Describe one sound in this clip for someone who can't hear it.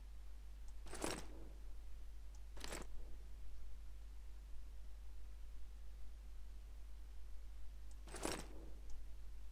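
Short soft whooshes sound as menu items are selected.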